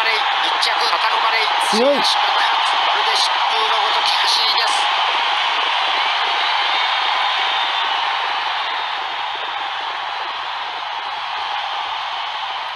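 A large crowd cheers and roars steadily, then slowly quietens.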